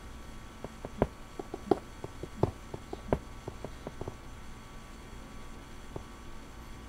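A pickaxe chips at stone in quick, uneven knocks.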